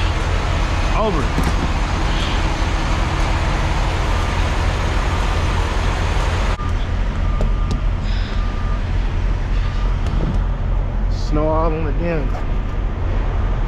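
Fuel gushes from a pump nozzle into a tank.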